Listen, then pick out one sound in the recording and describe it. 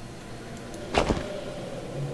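A short game menu sound clicks as items are picked.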